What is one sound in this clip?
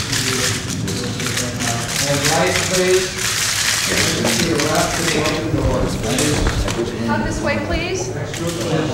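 A man answers nearby in a cheerful voice.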